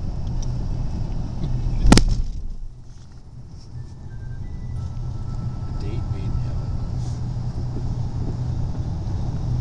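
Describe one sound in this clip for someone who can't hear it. Traffic rumbles steadily in the distance.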